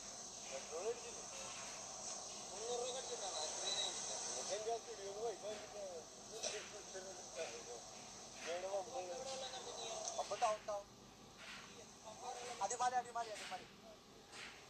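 Young men talk casually nearby outdoors.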